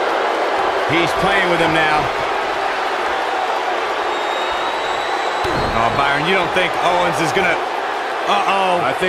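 A large crowd cheers and roars steadily in an echoing arena.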